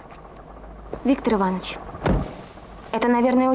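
A man speaks inside a car.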